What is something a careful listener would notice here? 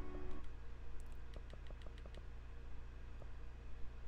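Soft interface clicks tick quickly.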